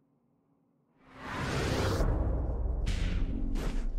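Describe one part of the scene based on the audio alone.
A magical teleport whooshes and swells loudly.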